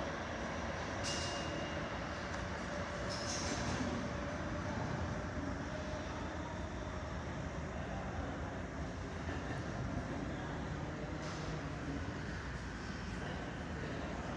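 A subway train rumbles distantly in a tunnel, echoing off the station walls.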